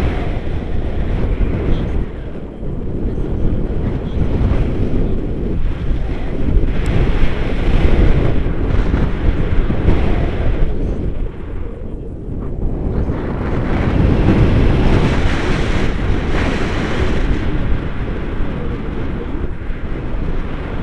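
A young man talks with animation close by, partly drowned by wind.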